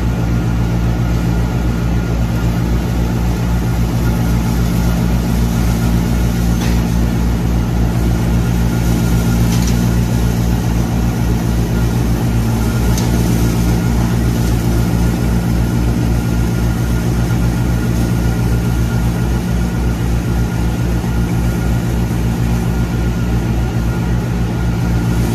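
A straw-blowing machine drones steadily with a low, throbbing hum.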